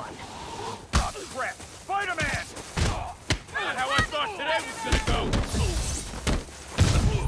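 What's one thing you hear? Punches and kicks thud and smack in a brawl.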